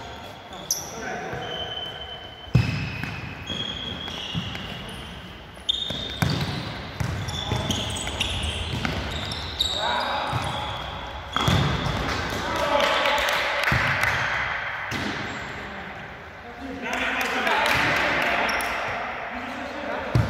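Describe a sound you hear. Shoes squeak sharply on a hall floor.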